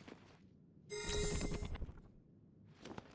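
A bright chime rings out as an item is collected.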